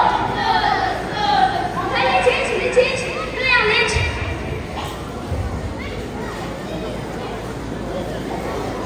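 Dancers stamp their feet on a wooden stage.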